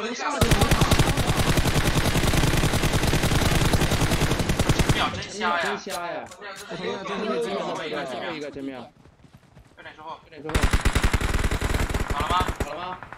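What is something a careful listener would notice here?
Rapid automatic gunfire from a video game rattles in bursts.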